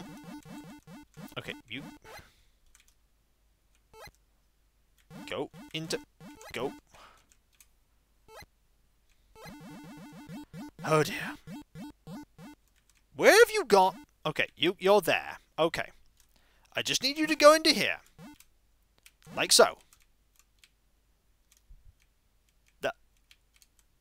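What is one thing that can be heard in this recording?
Beeping retro video game music plays in short bursts.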